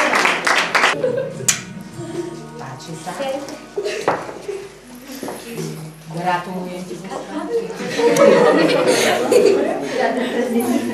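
A woman talks warmly up close.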